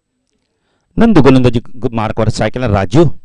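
A man commentates with animation through a microphone.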